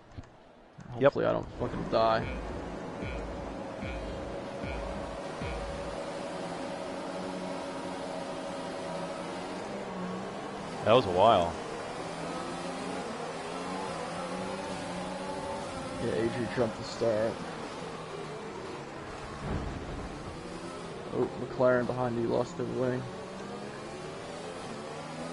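A racing car engine idles and revs, then roars as the car accelerates.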